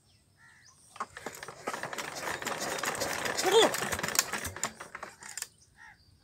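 Metal clanks and rattles close by.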